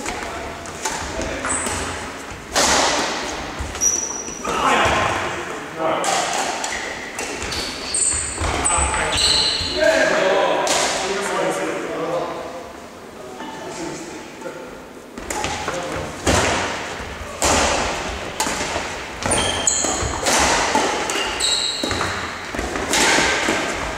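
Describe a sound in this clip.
Badminton rackets smack a shuttlecock in a large echoing hall.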